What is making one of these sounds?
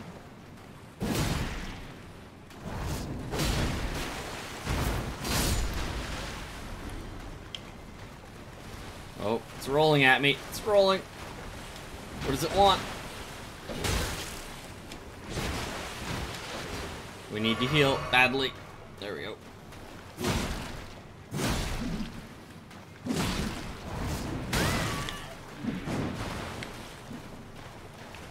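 Swords clash and swish.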